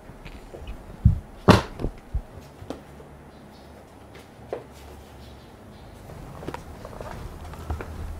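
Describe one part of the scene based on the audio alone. Books thump and knock as they are shuffled and stacked.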